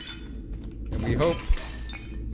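A fiery blast bursts with a deep thud.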